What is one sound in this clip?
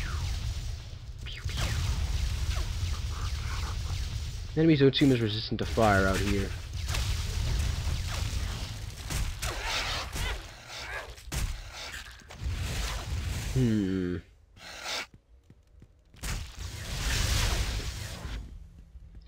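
Magic blasts and weapon blows crackle and thud in a fast fight.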